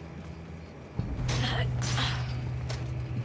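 A metal gate rattles and clanks.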